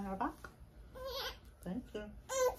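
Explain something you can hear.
A baby squeals and giggles.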